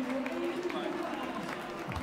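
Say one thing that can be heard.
A crowd cheers in a large open stadium.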